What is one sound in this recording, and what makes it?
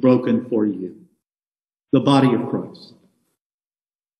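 An elderly man speaks slowly and solemnly into a microphone.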